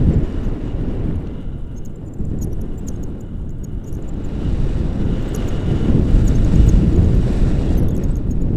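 Wind rushes loudly against a microphone outdoors.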